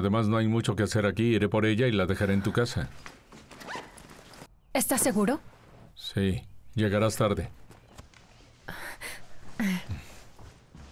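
A man speaks with emotion close by.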